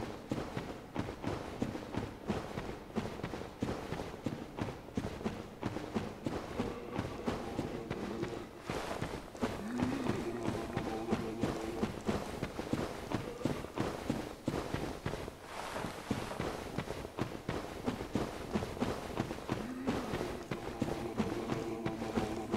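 Armoured footsteps thud steadily on hard ground.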